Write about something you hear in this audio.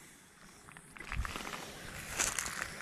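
Dry grass rustles as someone brushes through it.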